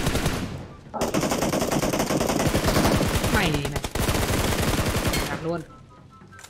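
Rapid gunfire rattles at close range.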